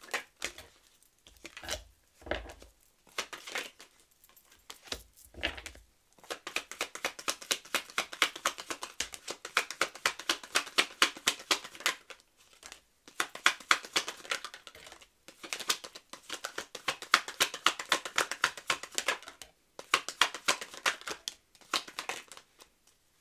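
Playing cards are laid down softly on a wooden table.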